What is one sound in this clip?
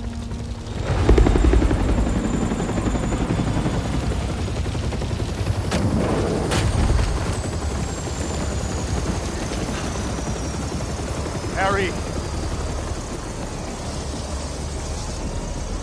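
A helicopter hovers low with its rotor thumping.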